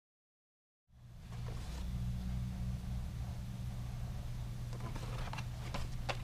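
A cardboard box rustles and taps as it is handled close by.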